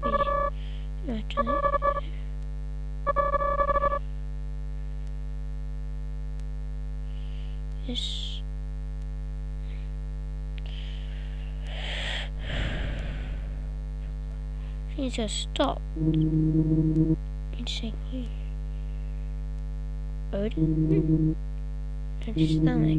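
Gentle electronic game music plays steadily.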